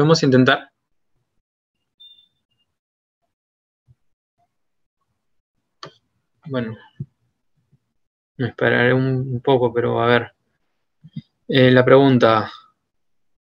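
A young man speaks calmly in short bursts over an online call.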